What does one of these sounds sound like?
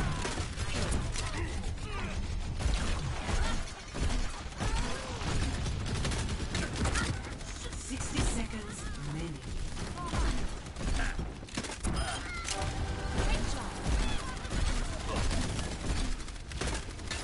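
Rapid gunfire rattles without a break.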